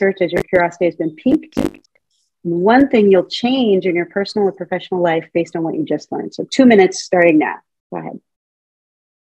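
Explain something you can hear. A middle-aged woman speaks calmly through an online call.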